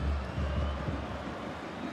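A ball is struck hard with a thump.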